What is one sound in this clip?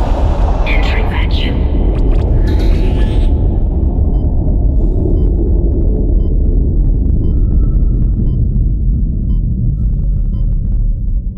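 A deep machine hum rumbles steadily throughout.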